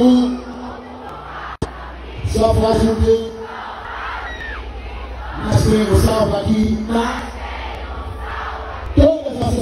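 A man sings into a microphone over loudspeakers.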